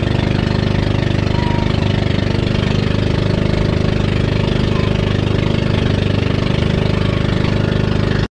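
A boat engine chugs loudly and steadily.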